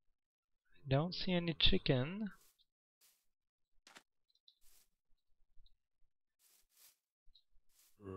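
Footsteps thud softly on grass and sand.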